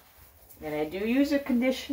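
Hands rub a wet dog's fur.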